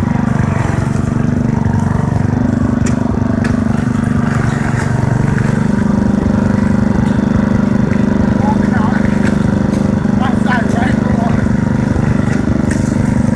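An engine of a small quad bike drones loudly and steadily close by.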